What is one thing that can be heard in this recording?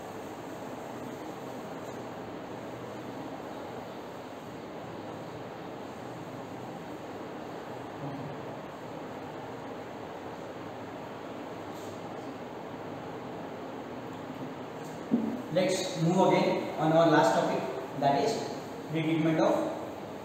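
A felt eraser rubs across a whiteboard.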